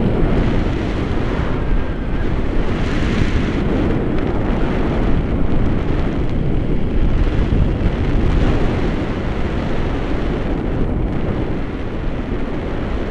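Strong wind rushes and buffets loudly, heard from high in the air.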